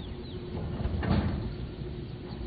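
A heavy metal furnace door clanks shut.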